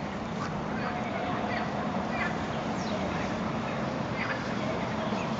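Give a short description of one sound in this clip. Wind rustles through leafy branches outdoors.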